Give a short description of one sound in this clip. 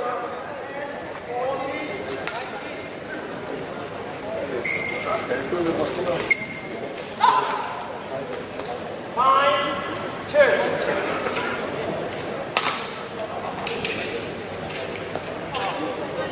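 Spectators talk and call out nearby.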